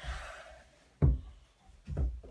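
A ball thumps against a wall.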